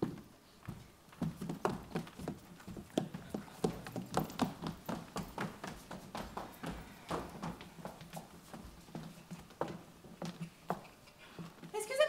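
Footsteps cross a wooden stage.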